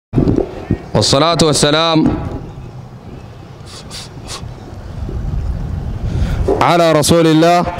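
A man sings loudly into a microphone, heard through a loudspeaker outdoors.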